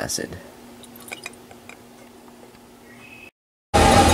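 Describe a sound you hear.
Liquid pours and trickles into a glass flask.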